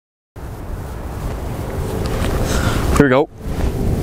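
A young man speaks outdoors.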